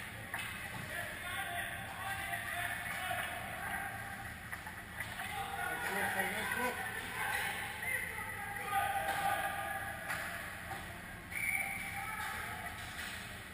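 Young children shout and call out across the echoing rink.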